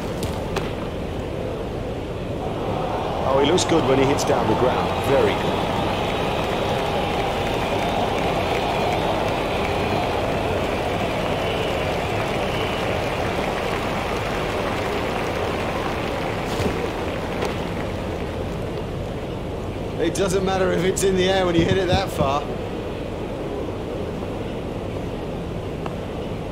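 A large stadium crowd cheers and roars.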